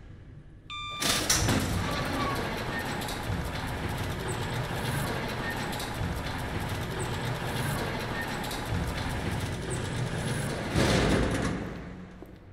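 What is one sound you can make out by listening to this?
A metal shutter rattles loudly as it rolls up.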